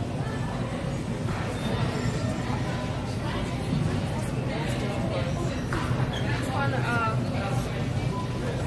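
A low steady hum fills a large indoor space.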